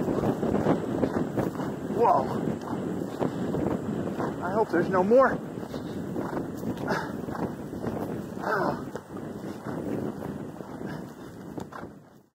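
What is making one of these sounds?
A horse's hooves thud rhythmically on grass at a canter.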